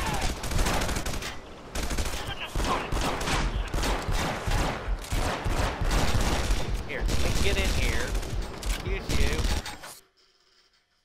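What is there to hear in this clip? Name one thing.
Explosions boom and gunfire crackles in quick bursts.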